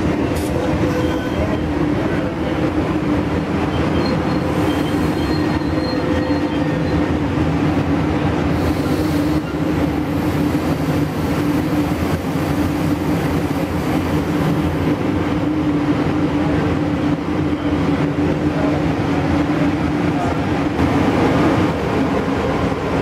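A diesel locomotive engine drones steadily nearby.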